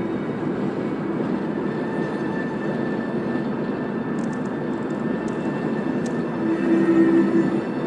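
Tyres roll steadily over smooth pavement.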